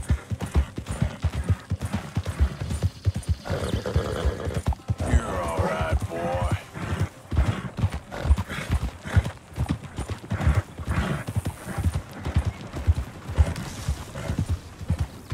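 A horse gallops steadily, its hooves thudding on a dirt track.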